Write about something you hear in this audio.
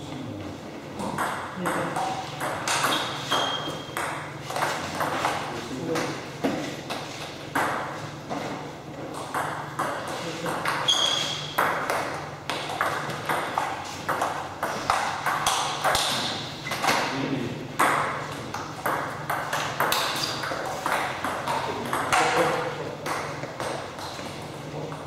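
Table tennis balls click rapidly against paddles and tables in an echoing hall.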